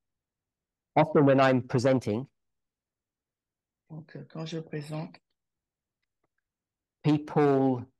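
A man speaks calmly in short phrases through an online call.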